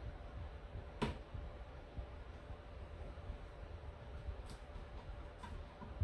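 A chef's knife taps on a plastic cutting board.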